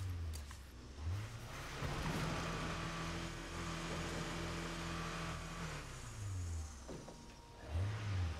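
A pickup truck engine rumbles and revs as it drives along a road.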